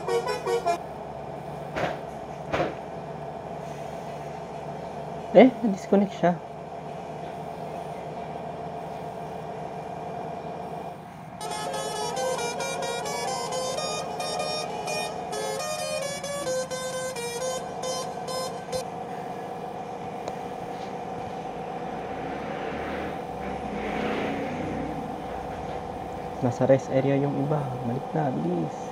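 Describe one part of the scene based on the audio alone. A bus engine hums steadily as it speeds up.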